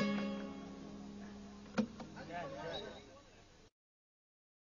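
An oud is plucked, its notes ringing out.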